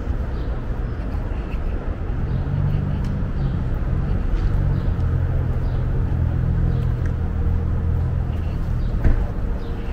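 Footsteps tap on a pavement close by.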